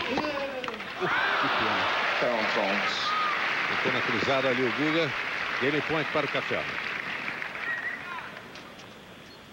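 A large crowd applauds loudly in an open stadium.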